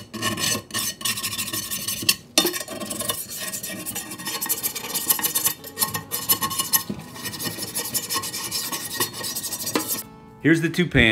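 A scrub brush scrubs hard against a metal pan.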